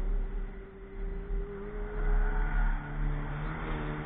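A car engine grows louder as the car drives up close.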